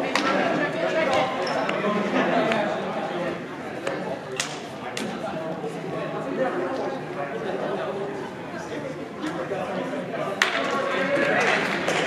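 Young men call out to each other in an echoing hall.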